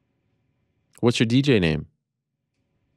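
A man speaks briefly into a close microphone, heard over an online call.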